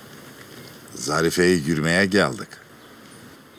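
An elderly man answers in a raised voice.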